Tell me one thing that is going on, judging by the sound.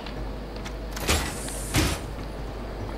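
A metal door bangs open.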